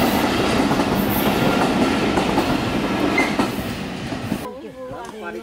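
A train rumbles loudly past on its tracks.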